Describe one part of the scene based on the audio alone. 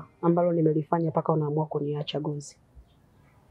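A woman speaks close by with emotion.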